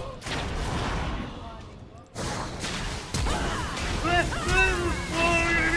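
Fantasy battle effects whoosh and crackle as spells are cast.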